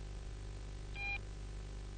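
A phone beeps briefly as a key is pressed.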